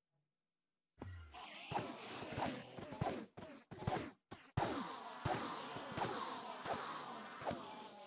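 Quick game sword strikes land again and again.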